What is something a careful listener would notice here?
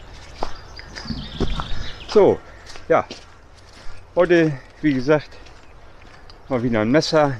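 A middle-aged man talks close up, outdoors.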